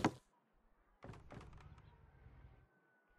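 Footsteps clunk on wooden ladder rungs.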